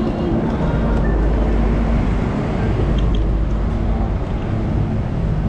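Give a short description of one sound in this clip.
A bus engine hums as it passes.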